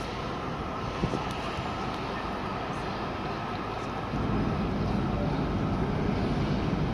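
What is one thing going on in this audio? Distant city traffic rumbles along a street outdoors.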